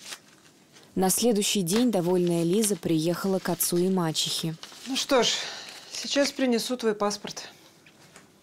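A woman speaks firmly nearby.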